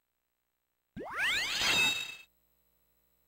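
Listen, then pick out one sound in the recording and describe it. A video game plays a short rising swoosh sound effect.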